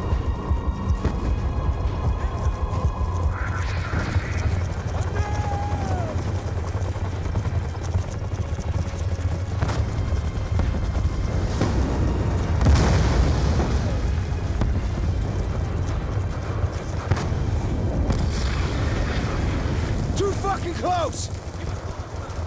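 Horses gallop with heavy, rapid hoofbeats.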